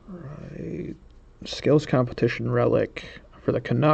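Cardboard cards rustle and slide as hands handle them.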